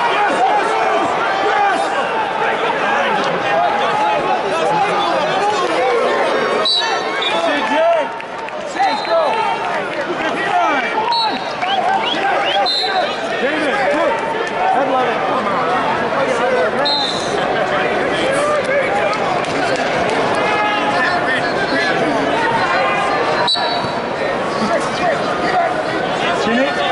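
A large crowd chatters and cheers in a big echoing arena.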